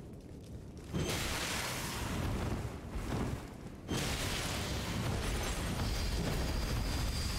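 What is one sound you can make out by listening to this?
Blades slash and clash loudly in a fight.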